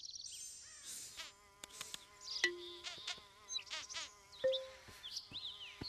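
Short video game sound effects pop and chime.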